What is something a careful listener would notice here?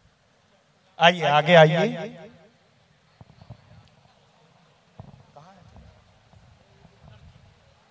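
A man speaks loudly and with feeling into a microphone over loudspeakers.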